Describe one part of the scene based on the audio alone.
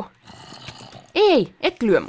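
A zombie groans close by.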